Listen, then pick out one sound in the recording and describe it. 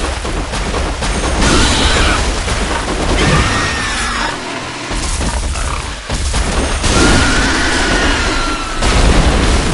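A blade slashes and strikes flesh.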